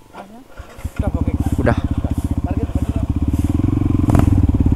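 A motorcycle engine rumbles loudly as the bike pulls away.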